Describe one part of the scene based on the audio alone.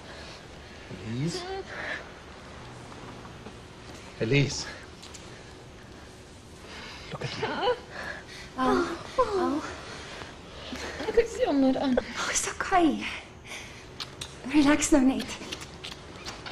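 A woman speaks softly and tenderly, close by.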